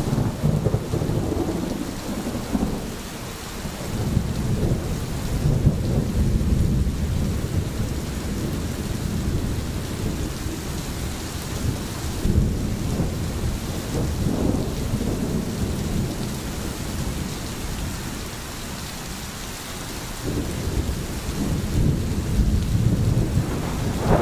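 A stream gurgles and rushes over stones.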